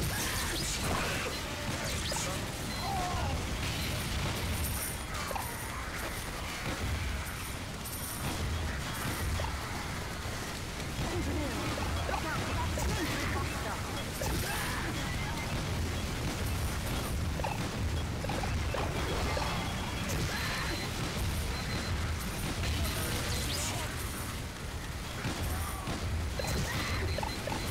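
A minigun whirs and rattles steadily.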